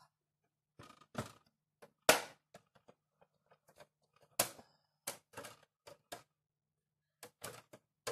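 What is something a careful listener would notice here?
A plastic toy van door clicks and clatters as it opens.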